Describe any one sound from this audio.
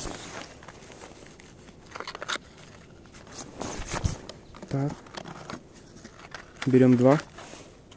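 Gloved fingers rustle against a small cardboard box as it is opened.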